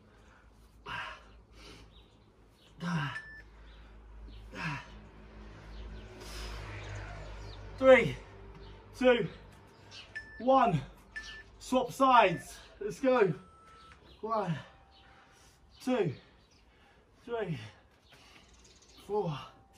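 A man breathes hard as he exercises close by.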